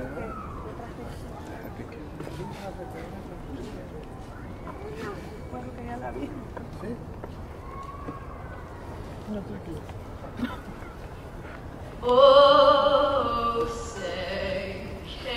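A large outdoor crowd murmurs and chatters quietly at a distance.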